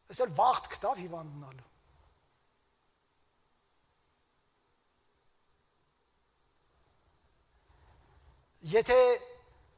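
A middle-aged man speaks with emphasis through a microphone, pausing between phrases.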